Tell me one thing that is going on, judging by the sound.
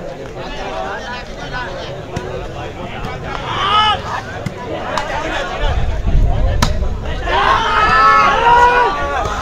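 A large outdoor crowd chatters and shouts.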